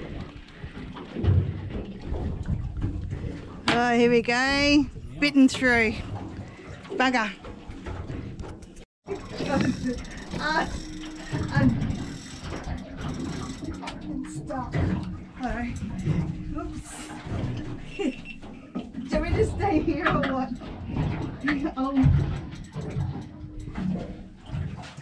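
Waves slosh against a boat's hull.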